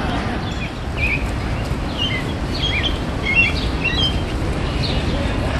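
A bird chirps in short bright calls.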